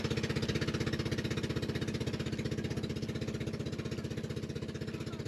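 A boat engine chugs rapidly and steadily close by.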